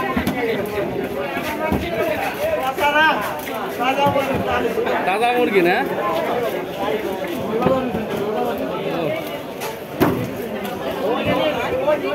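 A blade chops through fish with dull thuds.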